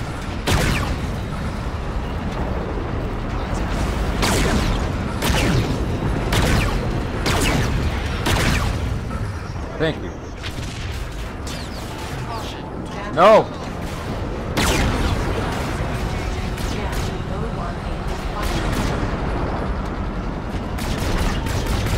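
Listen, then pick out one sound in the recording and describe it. A spacecraft engine roars steadily, with repeated rushing whooshes.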